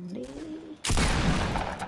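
A boy talks excitedly close to a microphone.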